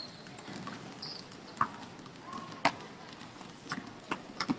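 Sneakers squeak on a hard court in a large echoing hall.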